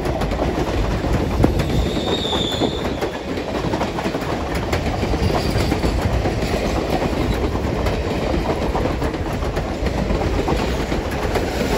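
Steel wheels click over rail joints.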